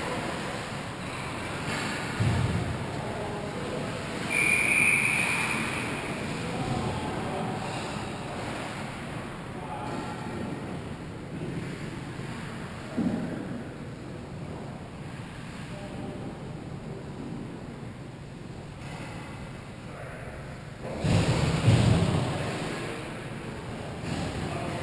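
Sounds echo around a large indoor rink.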